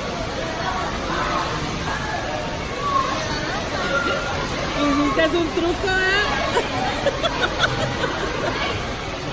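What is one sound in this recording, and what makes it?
Water gushes steadily out of a slide and splashes into a pool, in an echoing hall.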